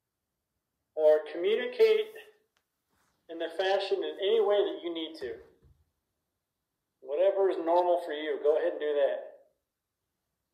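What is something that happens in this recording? A man speaks calmly in short bursts into a handheld microphone, close by.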